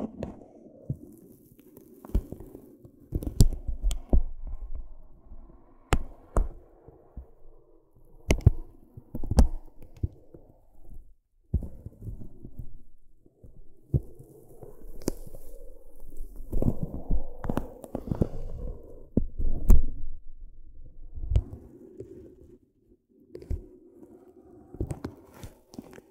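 A chalk stick scratches and scrapes softly across thin paper, close up.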